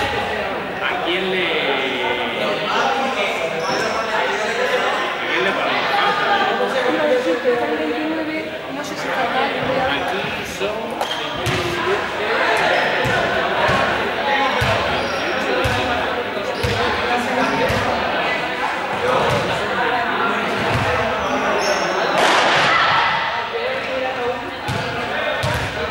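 Many children chatter and shout in a large echoing hall.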